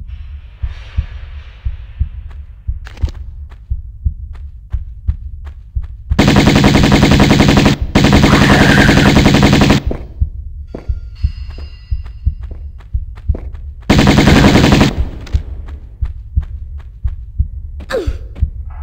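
Footsteps patter quickly and steadily on a hard floor.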